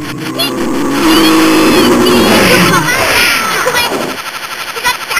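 Video game explosions boom and rumble.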